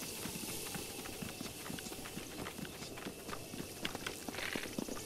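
Footsteps run quickly over wet grass.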